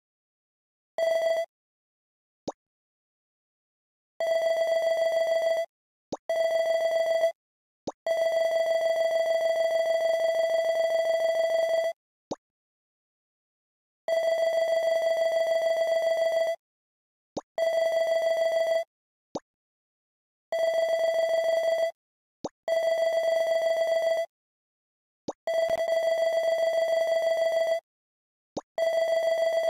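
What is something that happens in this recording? A steady electronic beeping tone sounds in short bursts.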